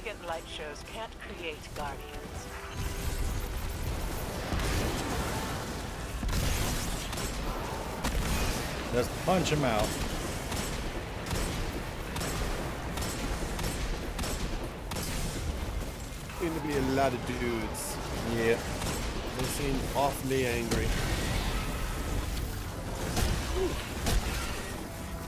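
Gunfire and explosions crackle and boom from a video game.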